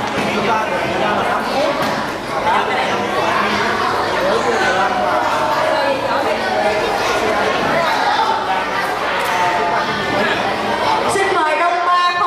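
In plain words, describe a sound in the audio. Many children chatter and call out all around.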